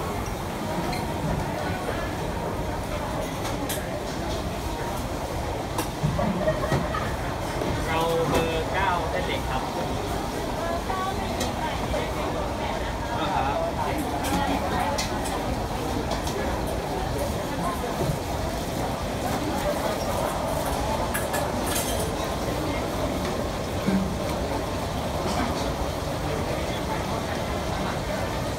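A crowd murmurs in a busy, echoing hall.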